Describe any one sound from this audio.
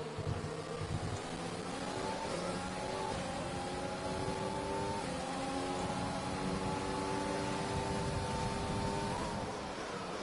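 A racing car engine screams, rising in pitch through quick gear changes.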